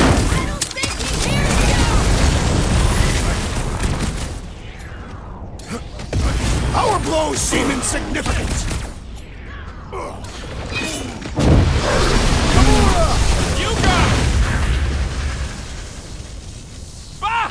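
Heavy blows and explosions thud and crash.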